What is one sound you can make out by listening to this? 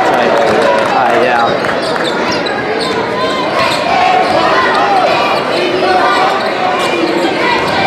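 A crowd cheers and chatters loudly in a large echoing gym.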